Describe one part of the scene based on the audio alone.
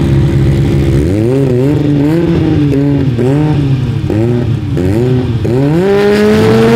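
A car engine revs up and down in sharp bursts.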